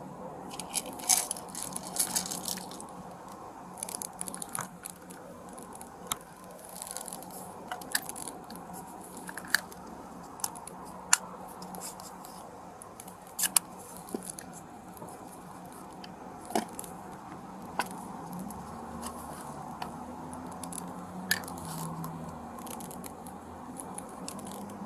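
Hands rummage through loose items close by, with scattered clicks, taps and rustles.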